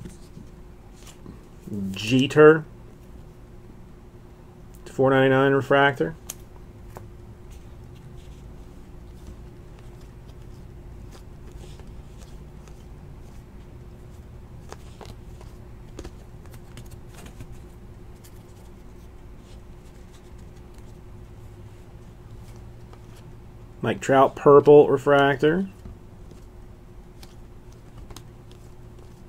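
Stiff cards flick and rustle softly between hands, close up.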